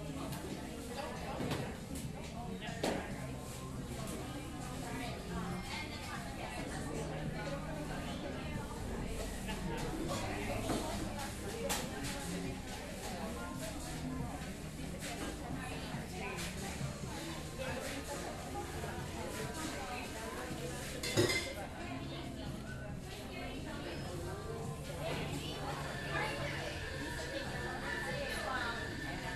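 A crowd of men and women chatter quietly in the background.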